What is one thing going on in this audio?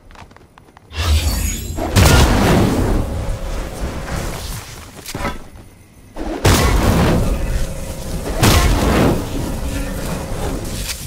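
A pickaxe swings and strikes with heavy whooshing blows.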